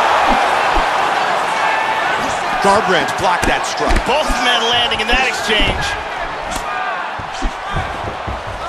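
Punches and kicks thud against bodies.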